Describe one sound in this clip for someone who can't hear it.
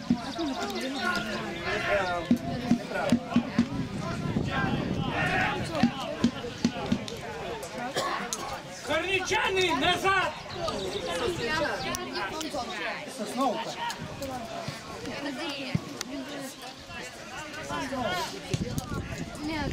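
A crowd of spectators chatters and calls out nearby, outdoors.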